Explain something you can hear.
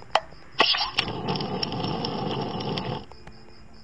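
A burst of fire roars and crackles.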